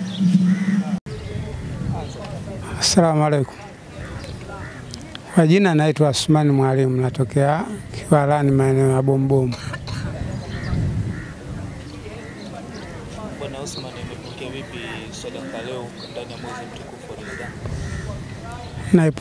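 An elderly man speaks slowly and with feeling into microphones close by.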